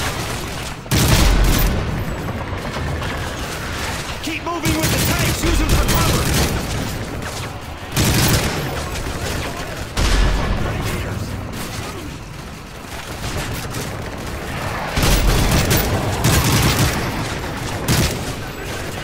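Explosions boom heavily nearby.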